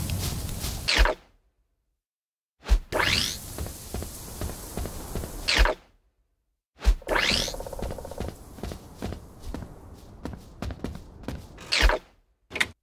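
A soft whoosh sweeps past.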